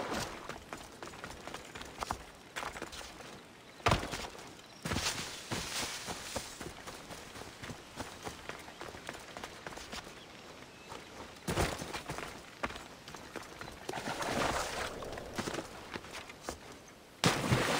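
Footsteps rustle through grass and brush.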